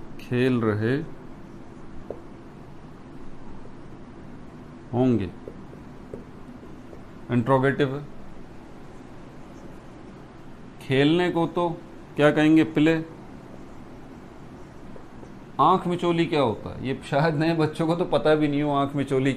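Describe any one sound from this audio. A man speaks calmly and clearly, as if teaching, close by.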